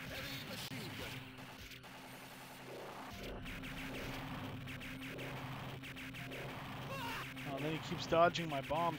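Electronic game music plays steadily.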